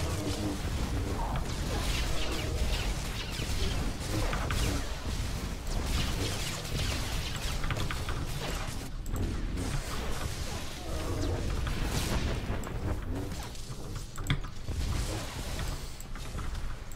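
Game blasts and energy effects crackle and boom.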